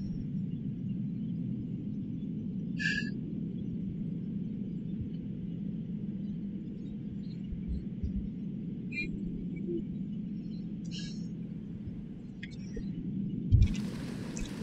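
A deep muffled underwater rumble drones steadily.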